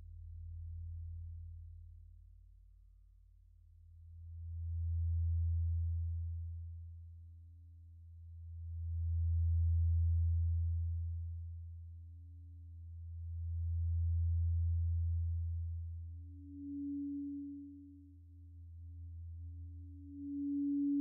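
A deep synthesizer drone swells and fades in slow waves.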